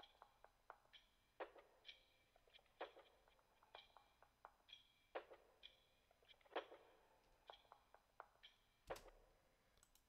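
Crisp electronic drum hits play in a loose rhythm.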